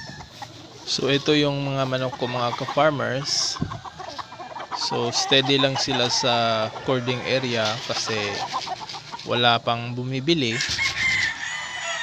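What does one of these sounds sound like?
Roosters crow loudly nearby, one after another.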